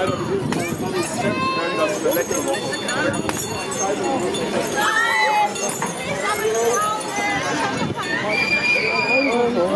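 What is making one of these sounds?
Children shout and squeal with excitement.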